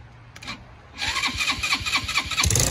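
A small engine sputters to life and revs loudly.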